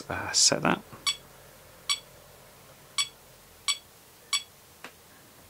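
An electronic device beeps briefly each time a button is pressed.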